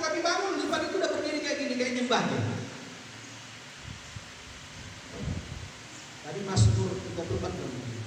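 A man speaks with animation into a microphone over loudspeakers in a large echoing hall.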